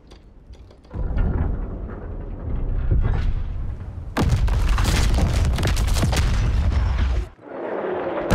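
Large ship guns fire with heavy booming blasts.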